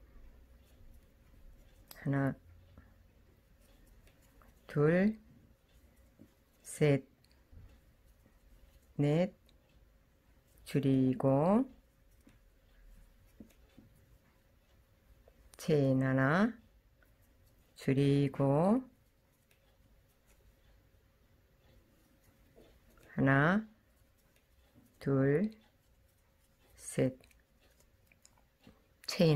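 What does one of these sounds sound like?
A crochet hook softly pulls yarn through stitches.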